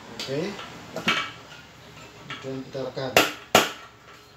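A hard plastic dish knocks and clicks as it is handled.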